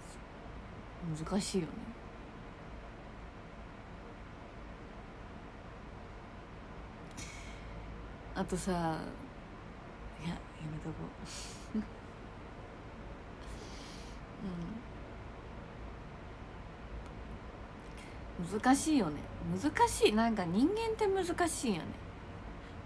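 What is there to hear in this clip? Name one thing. A young woman talks softly and close by, in short bursts with pauses.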